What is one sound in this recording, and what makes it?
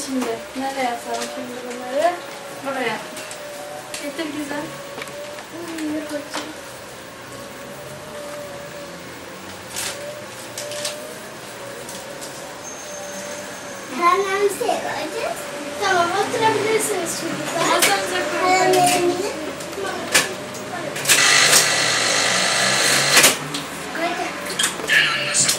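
Young children talk and call out excitedly nearby.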